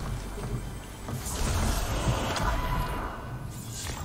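A treasure chest hums and chimes with a sparkling shimmer.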